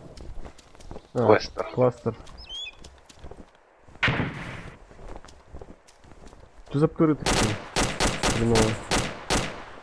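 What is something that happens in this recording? Footsteps tread quickly through grass.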